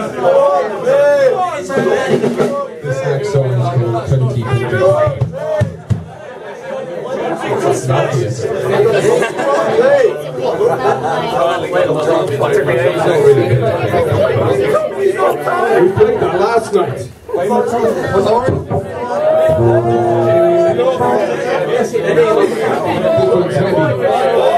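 A live band plays loud, distorted guitar music.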